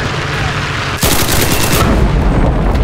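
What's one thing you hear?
A submachine gun fires in rapid bursts close by.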